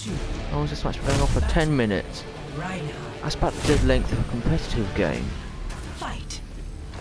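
Dramatic music swells with a heavy whoosh.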